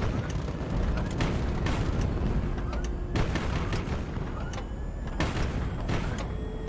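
Shells explode with heavy booms.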